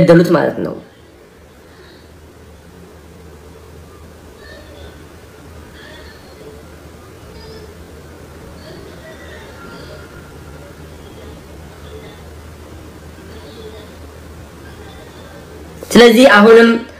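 Distant city traffic hums faintly.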